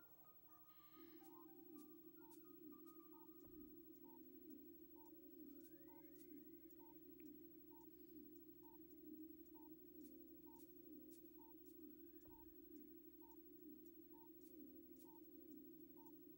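A video game sounds a low pulsing hum.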